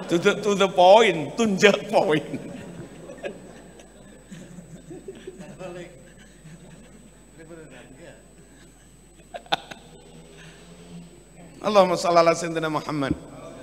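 A crowd of men laughs heartily.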